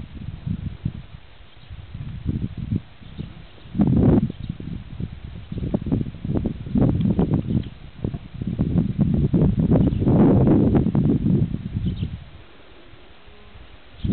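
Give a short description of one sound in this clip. A woman speaks softly and calmly close by.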